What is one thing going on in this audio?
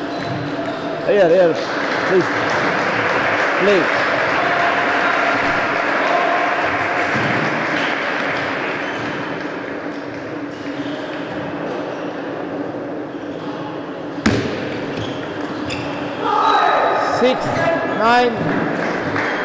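A young man shouts loudly in celebration.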